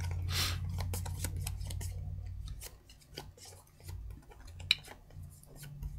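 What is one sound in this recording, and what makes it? Playing cards shuffle and slide against each other.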